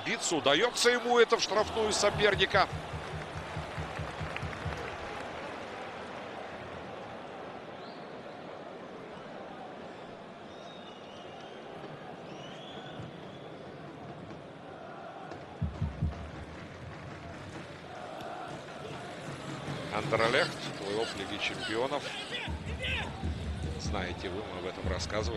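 A large stadium crowd cheers loudly, then settles into a steady murmur.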